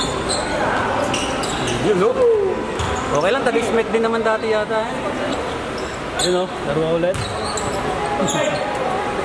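Sneakers squeak sharply on a hardwood court.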